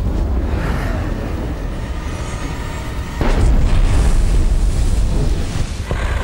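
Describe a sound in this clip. A bison rolls in the dust, scraping and thudding on dry ground.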